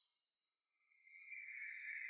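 A young woman screams in fright.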